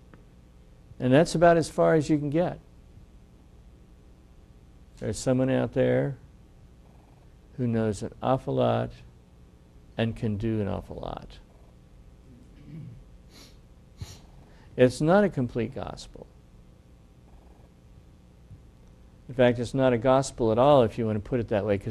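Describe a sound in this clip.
An older man speaks calmly into a microphone, in short phrases with pauses.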